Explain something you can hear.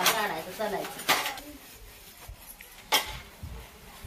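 Metal dishes clink and clatter.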